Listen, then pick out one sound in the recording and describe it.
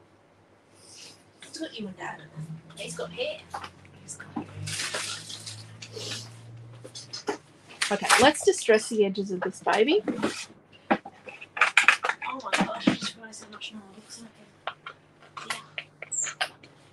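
Paper rustles and slides across a table.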